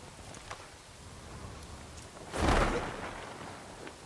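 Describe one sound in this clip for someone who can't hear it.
Wind rushes past during a fast parachute descent.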